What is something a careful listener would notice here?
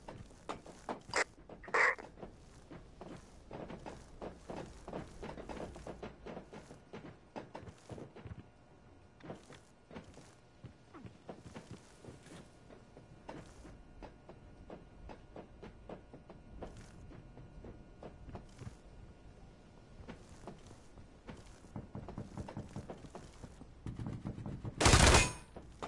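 Footsteps clatter on metal and wooden floors.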